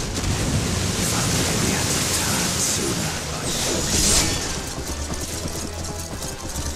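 Magic spells burst and whoosh during a battle.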